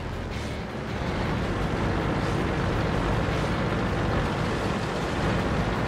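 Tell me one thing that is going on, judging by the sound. Tank treads clank and grind over cobblestones.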